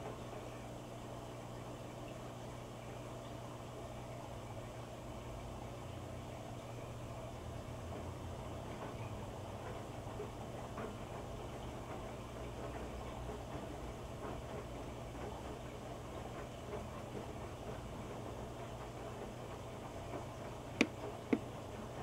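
Wet laundry sloshes and thumps inside a washing machine drum.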